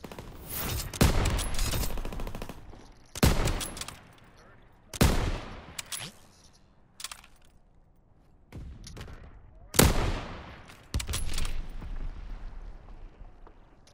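Rifle shots ring out one at a time, each with a rolling echo.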